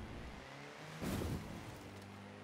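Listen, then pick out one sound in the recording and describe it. A jeep lands hard with a thud after a jump.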